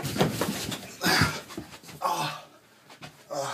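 A man falls and thumps onto the stairs.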